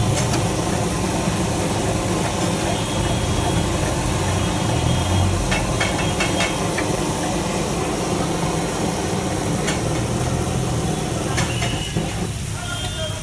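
Vegetables sizzle steadily in oil on a hot griddle.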